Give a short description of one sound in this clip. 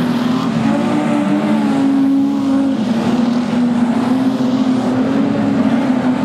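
Tyres skid and spray on loose dirt.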